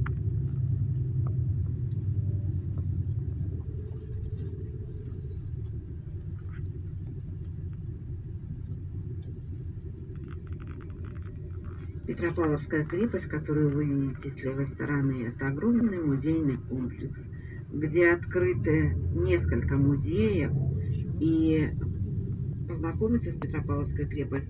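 A vehicle engine rumbles low and steady from inside the vehicle.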